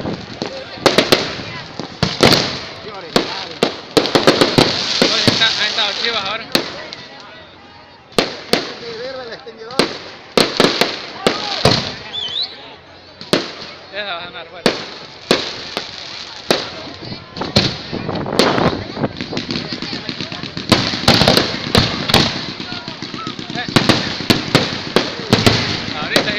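Fireworks crack and bang repeatedly outdoors.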